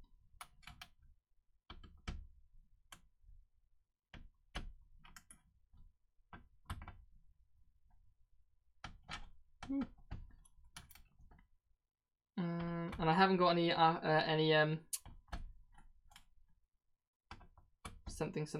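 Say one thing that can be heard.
A screwdriver clicks and scrapes against small screws.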